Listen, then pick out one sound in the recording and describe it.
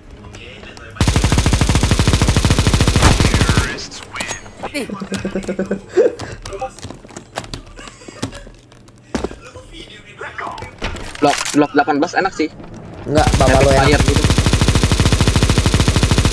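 A machine gun fires rapid, loud bursts of shots.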